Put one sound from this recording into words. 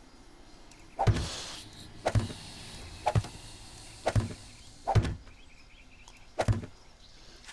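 Wooden frames knock into place one after another.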